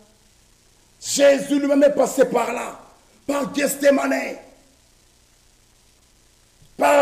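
A man preaches loudly and with passion into a microphone.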